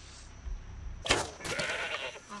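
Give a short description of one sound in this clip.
A bowstring snaps as an arrow is loosed.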